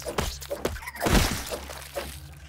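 A sharp hit lands on a creature with a burst of noise.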